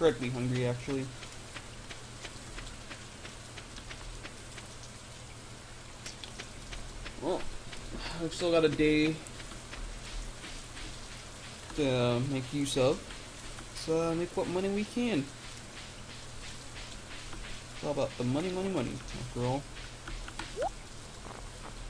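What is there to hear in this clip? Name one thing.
Light footsteps patter steadily on dirt and grass.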